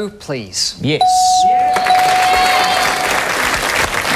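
A bright electronic chime rings out steadily.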